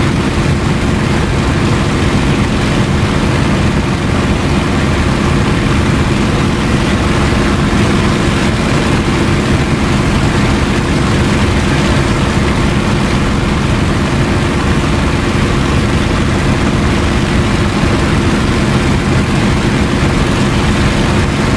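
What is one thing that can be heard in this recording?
Wind rushes past an open cockpit.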